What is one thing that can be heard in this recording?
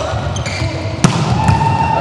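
A volleyball is struck hard with a sharp smack.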